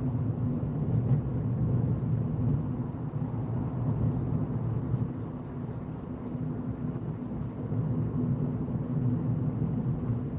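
Tyres roll on asphalt with a low rumble.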